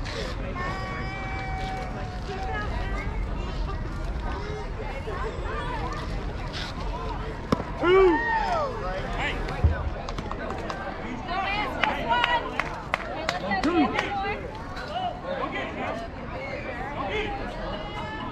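Young players shout and cheer across an open outdoor field.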